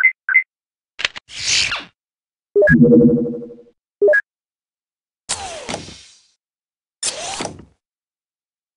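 A mechanical panel whooshes and clanks open and shut.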